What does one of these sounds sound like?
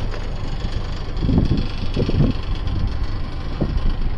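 A tractor's rotary tiller churns and rattles through soil.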